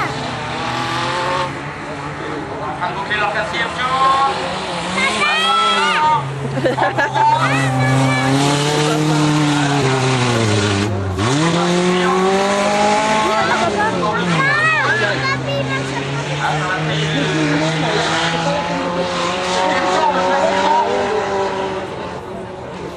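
Rally car engines roar, revving up and down.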